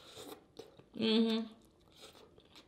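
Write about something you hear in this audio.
A woman hums with pleasure.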